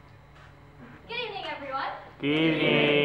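A young woman speaks calmly to an audience.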